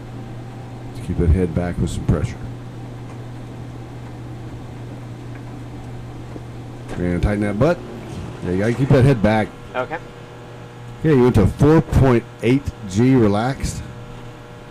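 A young man speaks in short, strained bursts through a close intercom microphone.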